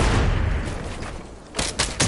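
Game building pieces thud and clatter into place.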